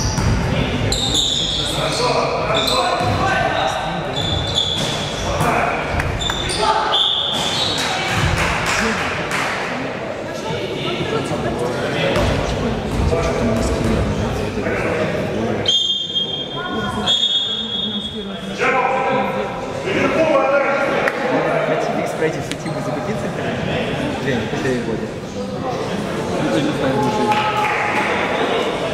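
Young people chatter and shout in a large echoing hall.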